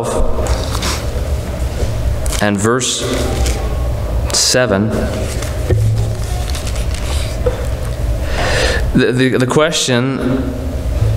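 A man speaks calmly into a microphone, heard in a large echoing hall.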